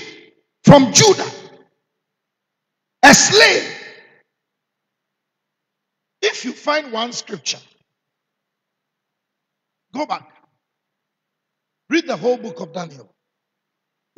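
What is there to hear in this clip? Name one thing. A man preaches forcefully into a microphone in short bursts, with long pauses.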